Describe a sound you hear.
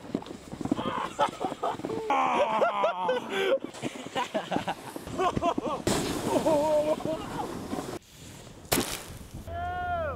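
A snowboard scrapes across snow.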